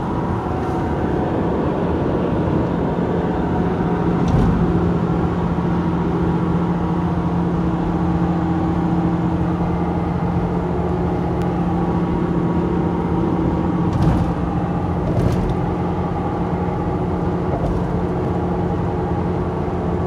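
A car's engine hums steadily as the car drives along a highway.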